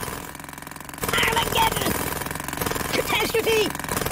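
A jackhammer rattles rapidly against a hard floor.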